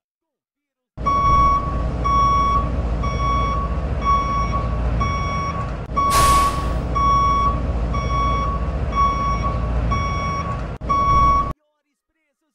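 A small truck's engine idles with a low rumble.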